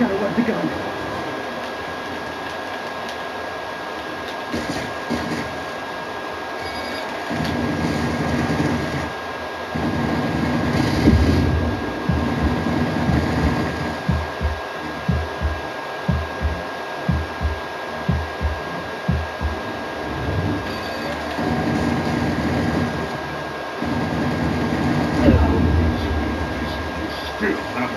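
Video game sounds play from a television loudspeaker in a room.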